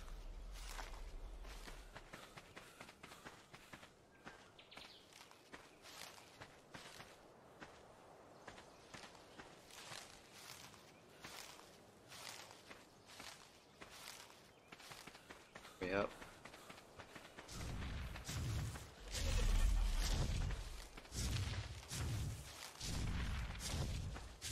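Leaves rustle sharply, over and over, as bushes are picked through by hand.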